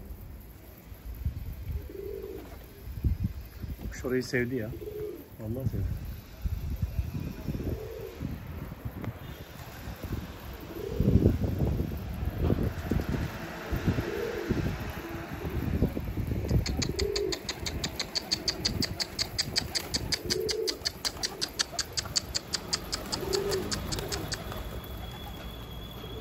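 Pigeons coo softly nearby.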